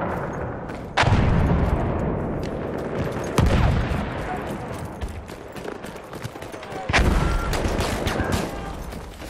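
Heavy explosions boom nearby, followed by a deep rumble.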